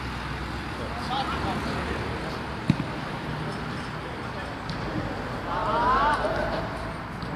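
Men shout to each other across an outdoor pitch.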